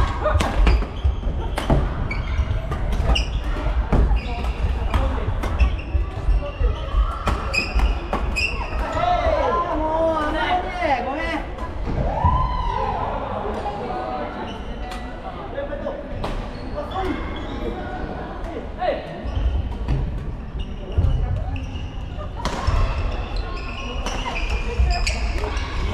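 Players call out and chatter with distant voices echoing in the hall.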